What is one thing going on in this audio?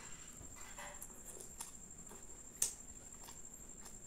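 A man chews food with wet, smacking mouth sounds close to a microphone.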